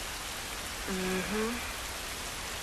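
A girl murmurs briefly.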